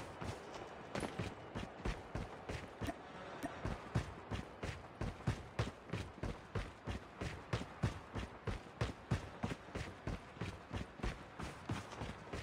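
Footsteps run quickly and evenly over grass and dirt.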